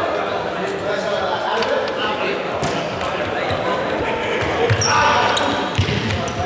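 Teenagers shout and call out to one another in a large echoing hall.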